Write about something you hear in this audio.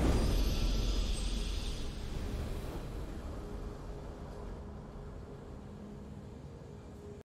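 A triumphant victory fanfare swells and slowly fades.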